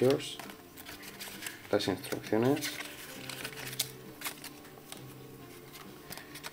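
Cardboard and paper rustle and scrape as hands unfold packaging.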